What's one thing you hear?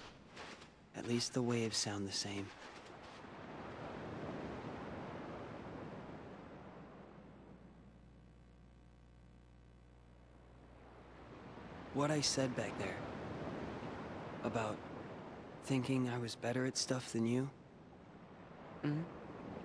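A young man speaks quietly and calmly.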